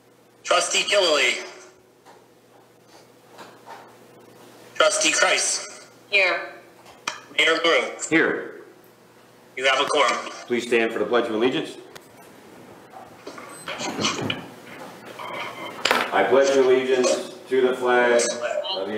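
A man speaks calmly into a microphone in a room with a slight echo.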